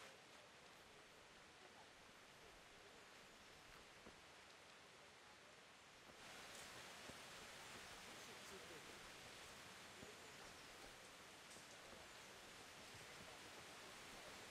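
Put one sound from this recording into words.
Footsteps crunch slowly on a dirt path.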